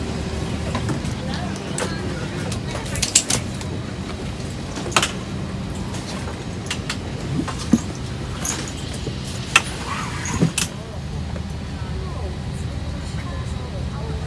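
A steady low hum of an aircraft cabin fills the air.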